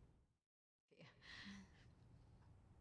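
A middle-aged woman speaks quietly.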